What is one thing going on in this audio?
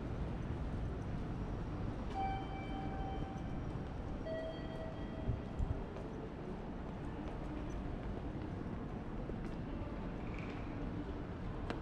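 Footsteps tap on a hard floor and then on stairs.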